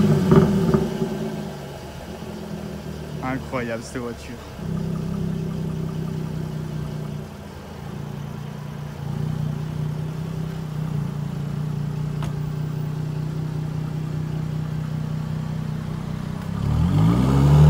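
A sports car engine idles with a deep steady rumble.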